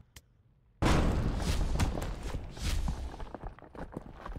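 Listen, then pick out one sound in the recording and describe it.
A loud blast booms and slowly rumbles away.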